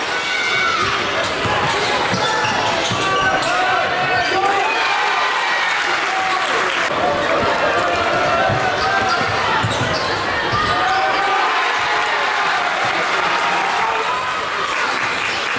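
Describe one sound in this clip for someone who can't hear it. A basketball bounces on the court as it is dribbled.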